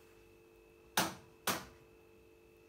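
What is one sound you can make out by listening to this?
A washing machine gives a couple of sharp clicks.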